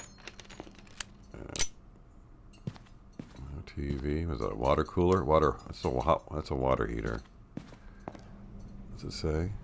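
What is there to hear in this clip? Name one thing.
Footsteps scuff slowly on a hard floor.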